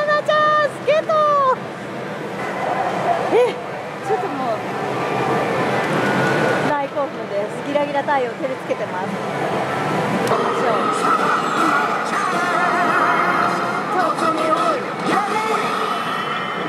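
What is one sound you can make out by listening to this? A slot machine plays electronic jingles and beeps.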